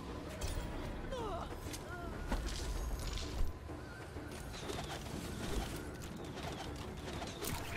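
Game sound effects click and whoosh.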